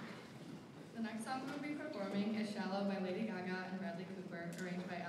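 A choir of young girls sings.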